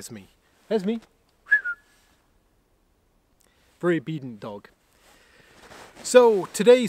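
A middle-aged man speaks calmly and close by, outdoors.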